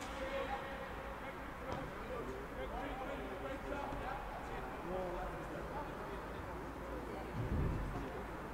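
Several men talk and call out to one another outdoors at a distance.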